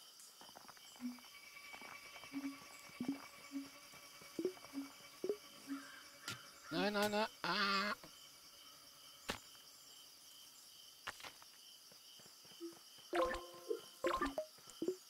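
Short electronic blips and chimes sound now and then.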